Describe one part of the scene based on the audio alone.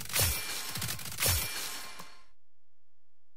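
Electronic game sound effects whoosh and chime.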